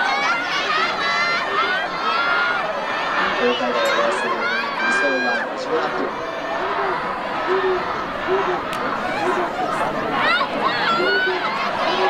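A large crowd of young people cheers and shouts outdoors in a wide open space.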